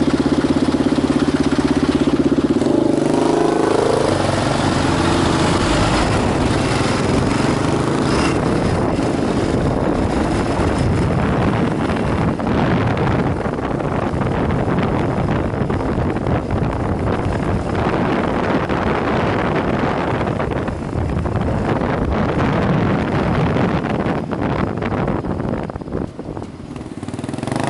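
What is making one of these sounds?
A motorcycle engine idles and then revs up as the motorcycle pulls away.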